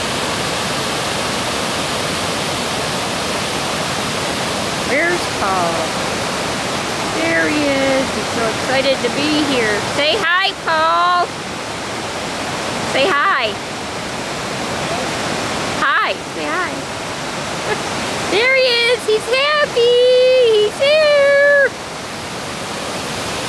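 Water rushes steadily over rocky falls outdoors.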